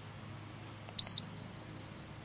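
An electronic control board beeps once.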